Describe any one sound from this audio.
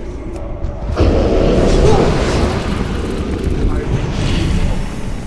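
Fiery magic blasts burst with a roaring whoosh.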